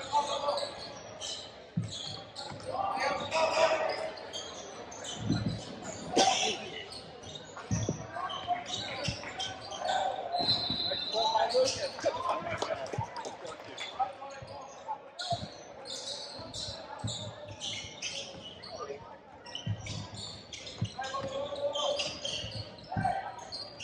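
Young players shout and call out to each other across the gym.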